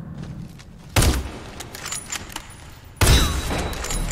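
A rifle fires loud single shots in a video game.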